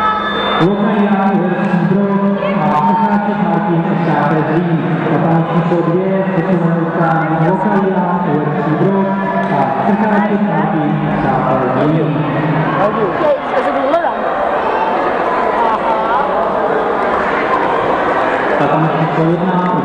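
A crowd of adults and children chatters in an echoing hall.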